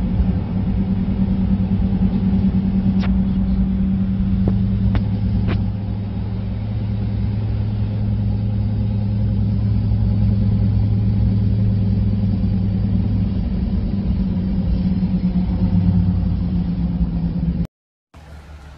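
A car engine hums steadily as tyres roll along a road.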